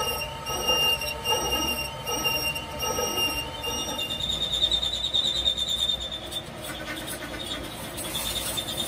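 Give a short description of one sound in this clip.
A cutting tool scrapes against turning steel with a high, steady whine.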